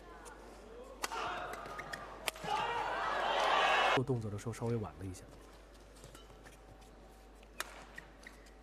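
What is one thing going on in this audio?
A racket smacks a shuttlecock back and forth.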